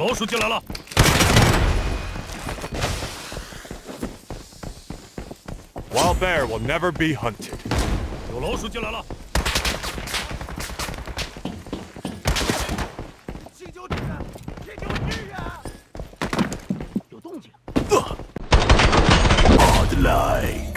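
A rifle fires rapid bursts of loud gunshots indoors.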